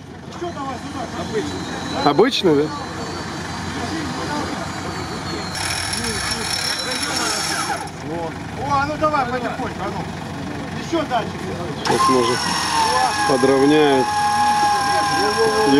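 A truck engine runs and revs.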